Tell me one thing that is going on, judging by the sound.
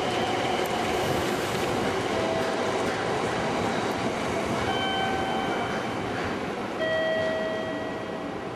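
A high-speed train rushes past.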